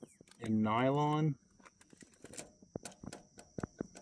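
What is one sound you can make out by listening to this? A small tool scrapes and taps against a hard plastic piece.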